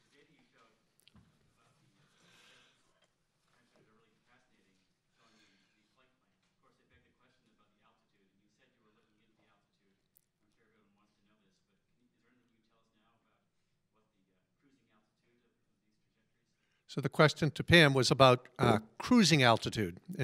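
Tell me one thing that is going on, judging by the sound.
A man speaks calmly into a microphone, heard through a loudspeaker.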